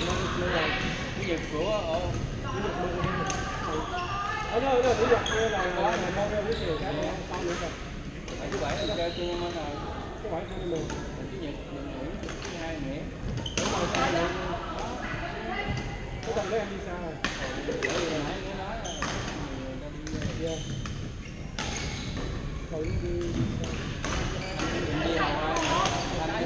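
Men chat nearby in relaxed voices.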